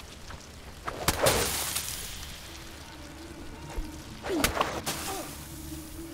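Fire bursts roar and whoosh across open ground.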